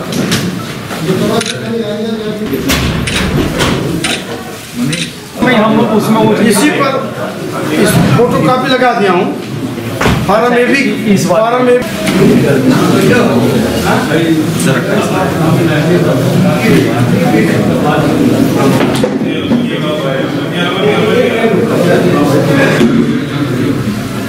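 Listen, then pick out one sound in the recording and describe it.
Several men murmur and talk in the background.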